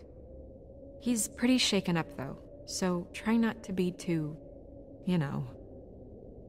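A young woman speaks softly and with worry.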